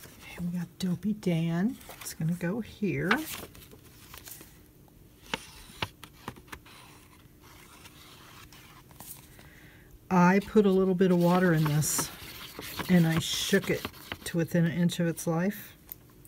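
A sheet of card rustles and taps against a table.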